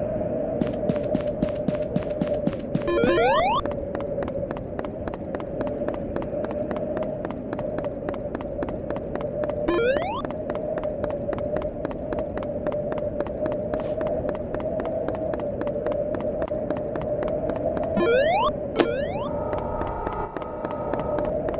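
Quick footsteps patter steadily across a hard floor.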